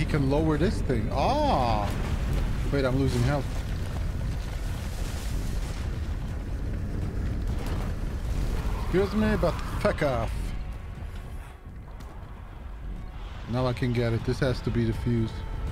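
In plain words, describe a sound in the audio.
A man talks casually into a close microphone.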